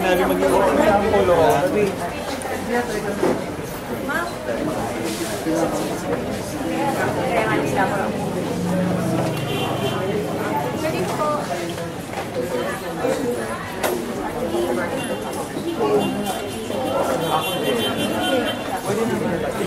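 A crowd of men and women chatter close by.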